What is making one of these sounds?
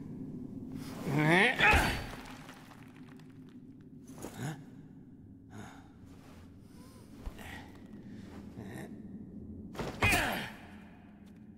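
A man grunts and strains with effort.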